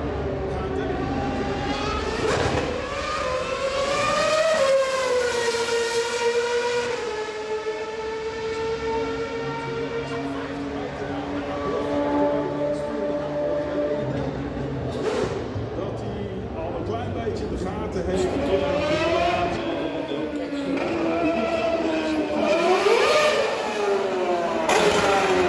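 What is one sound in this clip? A racing car engine screams loudly past, its pitch rising and falling as it shifts gears.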